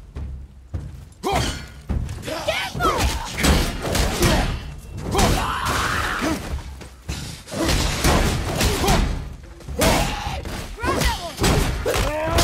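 Heavy blows land with loud thuds and clangs.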